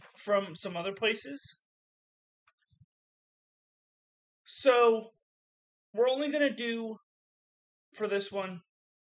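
A middle-aged man speaks calmly and close up, in short phrases with pauses.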